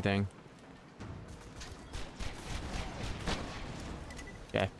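Gunshots and explosions crackle in a game battle.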